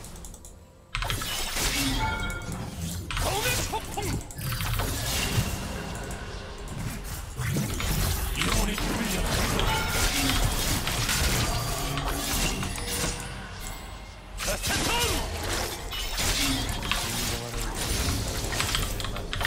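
Magic blasts, whooshes and hits ring out in a fast video game battle.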